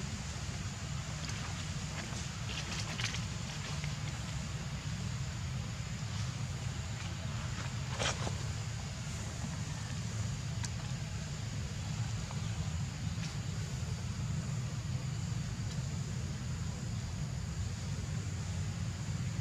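A monkey splashes and paddles in shallow water.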